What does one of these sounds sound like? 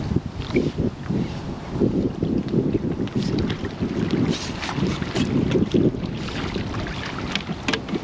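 Water laps and ripples against a boat.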